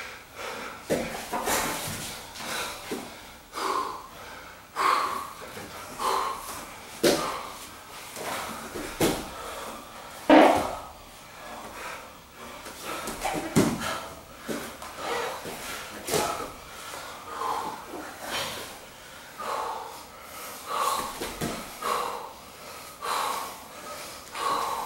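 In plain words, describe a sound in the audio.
Bare feet squeak and shuffle on a vinyl mat.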